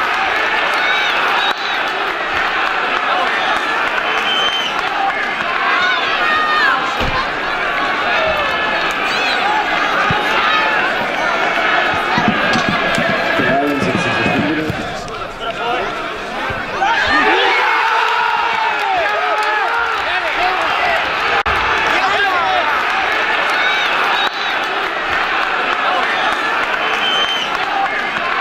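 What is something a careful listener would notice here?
A crowd of spectators cheers and chants loudly outdoors.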